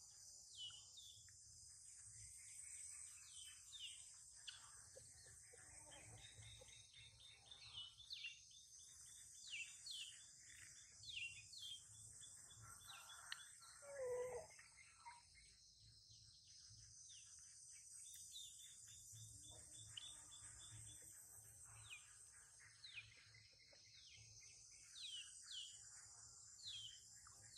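A baby monkey sucks milk from a bottle.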